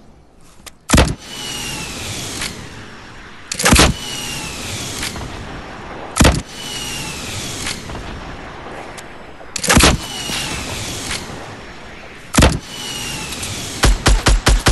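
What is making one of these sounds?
Rockets explode with loud booms.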